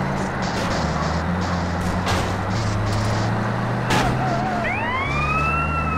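A car crashes into another vehicle with a loud thud.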